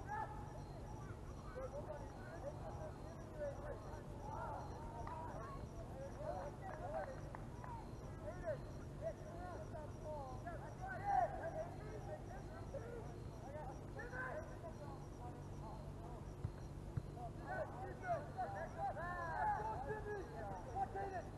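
Distant players shout across an open field outdoors.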